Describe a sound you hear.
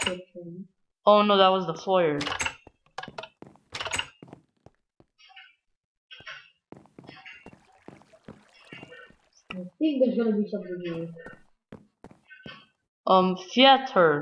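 Footsteps tap on wooden boards.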